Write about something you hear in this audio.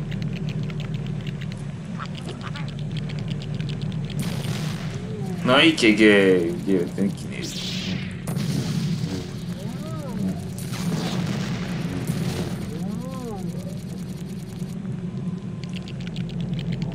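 Game sound effects chime and clatter as pieces break apart.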